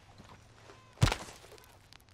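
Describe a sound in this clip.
A heavy blow lands with a sharp thud.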